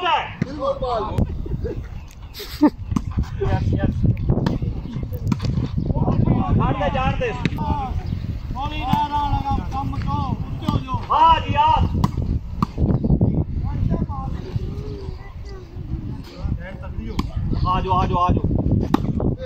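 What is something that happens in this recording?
A volleyball thuds off hands.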